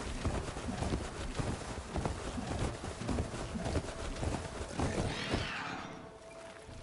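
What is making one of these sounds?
A large mechanical beast runs with heavy, rapid thudding footsteps.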